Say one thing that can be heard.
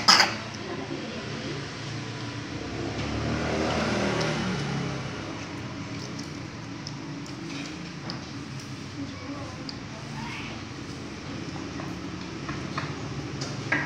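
A young boy chews and slurps food.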